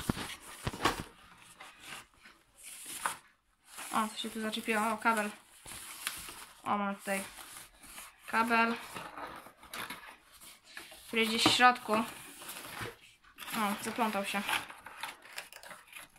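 Cardboard packaging scrapes and taps as a box is opened.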